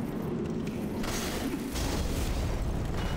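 A fireball bursts with a roar.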